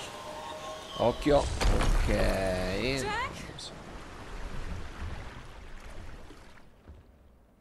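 A burst of rushing, whooshing game sound swells and fades.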